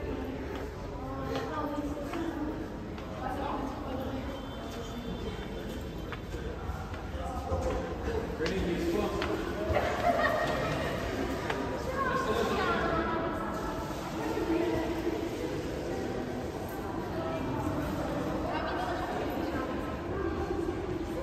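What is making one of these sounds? A crowd of people murmurs and talks in a large echoing hall.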